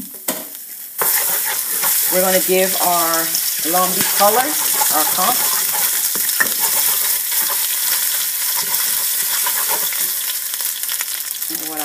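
Oil sizzles and crackles loudly in a hot pan.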